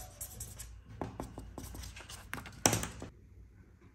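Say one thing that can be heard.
A marker pen scribbles on paper.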